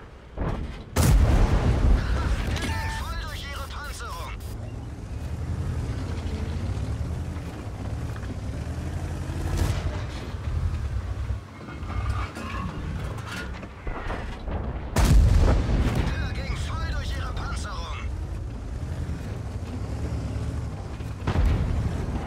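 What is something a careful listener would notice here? A tank cannon fires with a loud, sudden boom.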